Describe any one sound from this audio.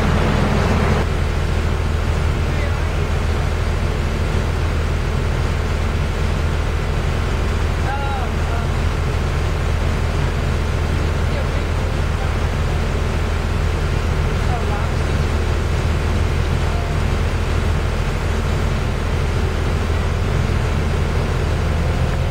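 Road traffic hums and rumbles steadily.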